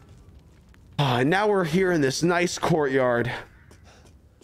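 A young man speaks loudly and expressively into a close microphone.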